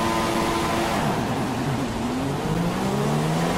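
A racing car engine roars and rises in pitch as the car speeds away.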